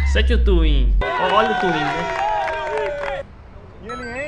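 A group of men cheer and shout outdoors.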